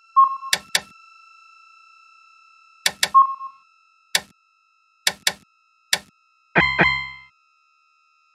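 Short electronic menu beeps click several times in quick succession.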